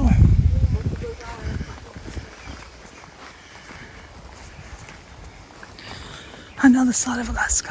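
Footsteps crunch softly on a dirt trail.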